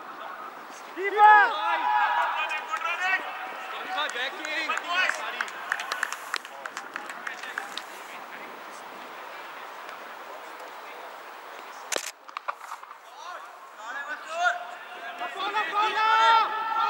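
Men shout and call to each other outdoors across an open field.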